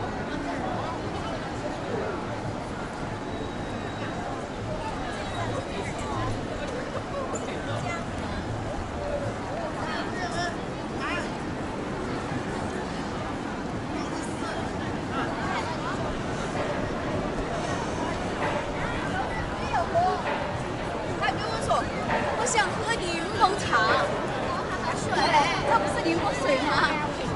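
A crowd of people chatters outdoors, with voices growing livelier toward the end.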